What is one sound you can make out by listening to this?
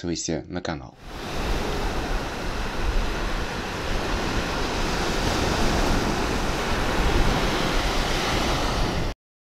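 Shallow water washes and fizzes over sand.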